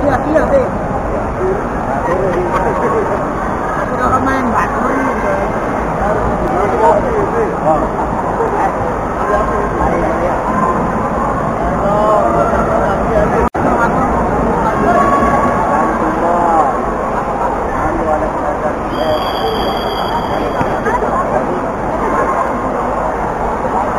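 A crowd chatters and calls out in a large echoing hall.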